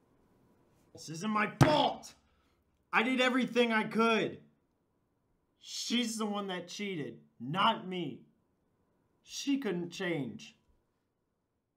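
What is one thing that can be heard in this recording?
A young man speaks close by.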